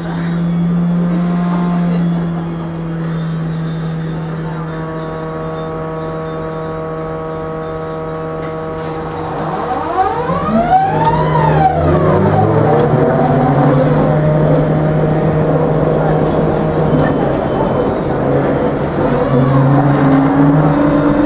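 A bus engine hums steadily from inside the moving bus.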